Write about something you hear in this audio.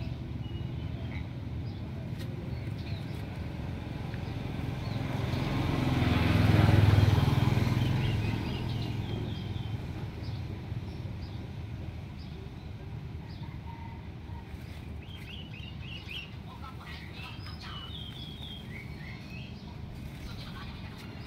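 A bird chirps and whistles in short calls.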